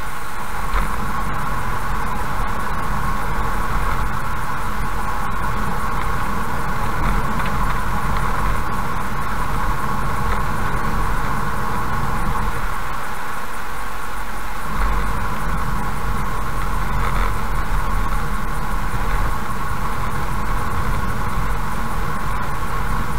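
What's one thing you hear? A car's engine hums steadily as it drives.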